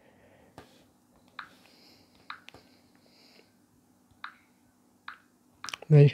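A finger taps on a phone with soft clicks.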